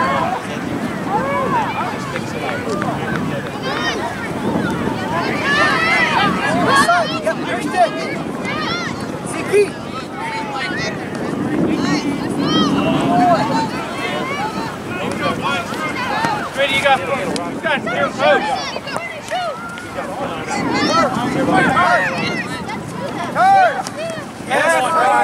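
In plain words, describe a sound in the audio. Young players shout and call to each other outdoors.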